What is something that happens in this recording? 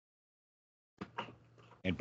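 A young man speaks quietly through an online call.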